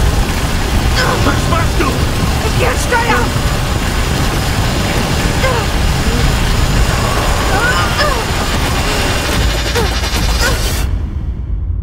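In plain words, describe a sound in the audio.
Heavy rain and wind lash down in a storm.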